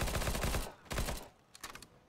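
A rifle fires a burst of sharp shots.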